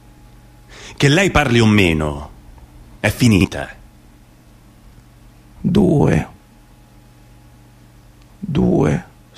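A young man sings in short phrases, close by.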